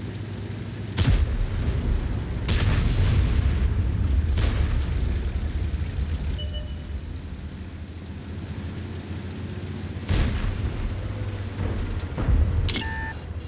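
A tank cannon fires with sharp, loud booms.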